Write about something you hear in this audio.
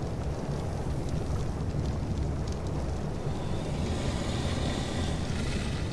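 Keyboard keys click softly as a message is typed.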